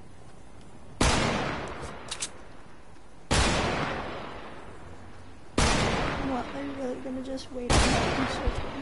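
Loud sudden thuds land one after another.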